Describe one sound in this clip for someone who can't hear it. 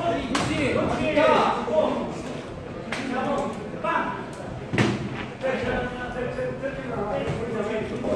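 Men shout from ringside.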